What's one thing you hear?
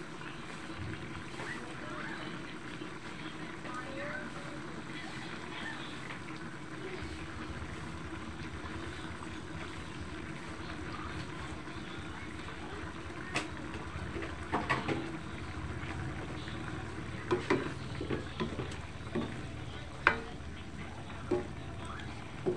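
A thick stew simmers and bubbles in a metal wok.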